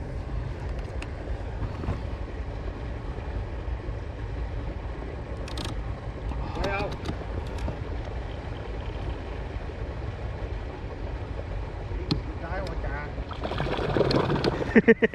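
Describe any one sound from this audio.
Water swishes against a boat's hull.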